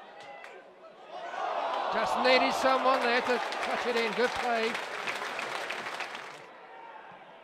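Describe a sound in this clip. A large stadium crowd roars loudly and then dies down.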